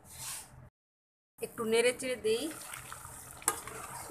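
A metal lid is lifted off a pot with a clink.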